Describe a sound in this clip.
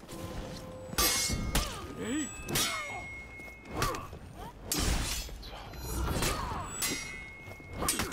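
Metal blades clash and ring sharply again and again.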